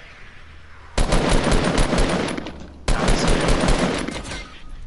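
Rapid gunfire bursts loudly in a game.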